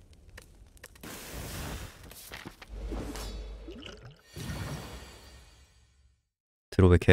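Soft whooshing game effects play as a battle begins.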